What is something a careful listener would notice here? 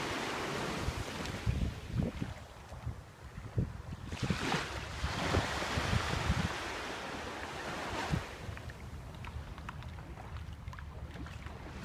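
Shallow water sloshes and splashes around legs wading through it.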